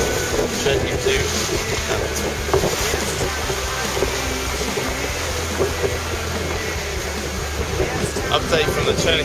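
Waves rush and splash against a boat's hull.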